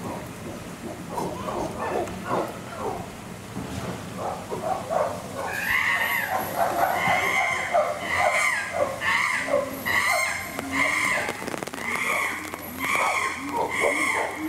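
Chimpanzees call out with high hoots and squeals.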